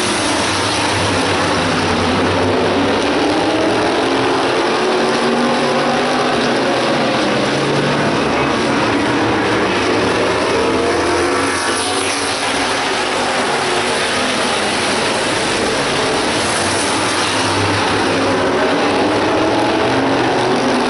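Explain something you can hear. Racing car engines roar loudly as the cars speed around a track.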